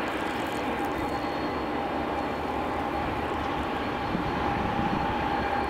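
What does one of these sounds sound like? Train wheels squeal on a curve with a high steady whine.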